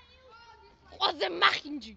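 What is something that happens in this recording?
A young boy shouts close by.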